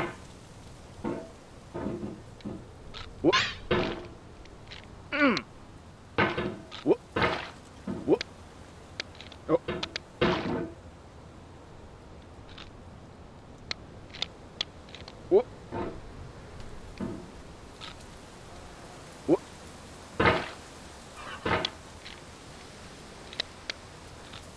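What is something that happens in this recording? A metal hammer clanks and scrapes against rock, again and again.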